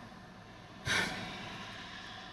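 A woman sighs heavily close by.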